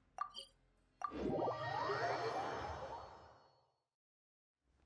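A loud shimmering whoosh swells and fades.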